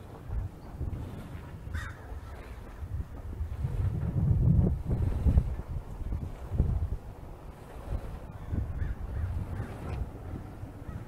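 Wind buffets outdoors in low rumbling gusts.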